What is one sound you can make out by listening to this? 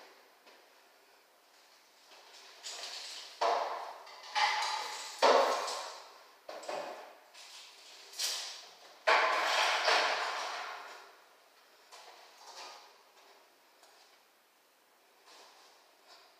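A kettlebell whooshes as a man swings it.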